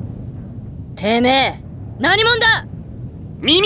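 A young woman shouts angrily.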